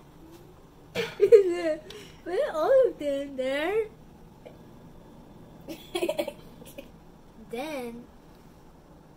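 A young boy speaks excitedly and laughs close by.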